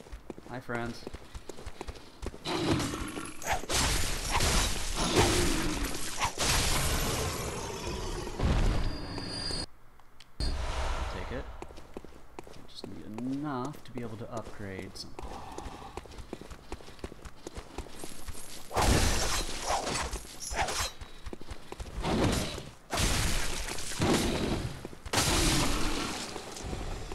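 Footsteps run over wet stone.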